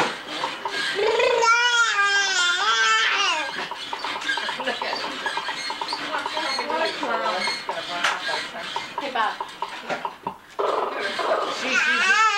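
A young child squeals and babbles excitedly close by.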